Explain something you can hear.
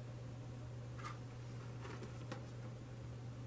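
Playing cards slide and rustle against each other in hands.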